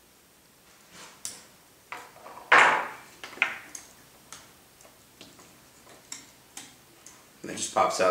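Small plastic parts click and knock as they are handled.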